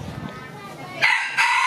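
A rooster crows loudly.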